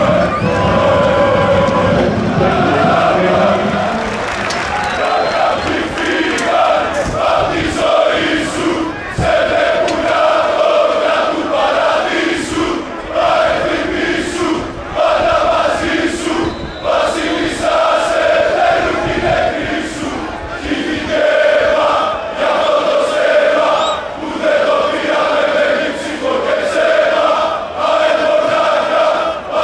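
A large crowd of fans chants loudly in unison outdoors.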